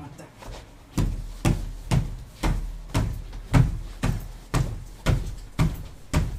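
A bed thumps and creaks in a steady rhythm.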